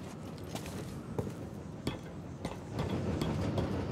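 Light footsteps tap on stone.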